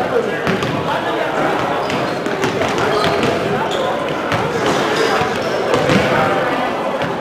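Young women call out to each other across a large echoing gym.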